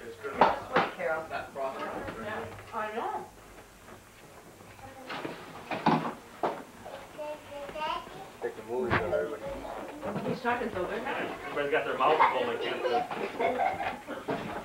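Several adults talk and chatter close by.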